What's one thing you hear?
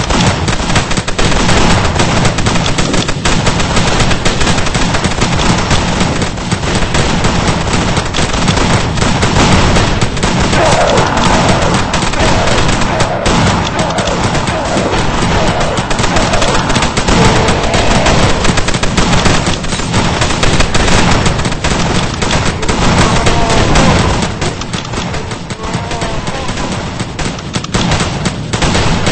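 Rapid gunfire crackles without pause.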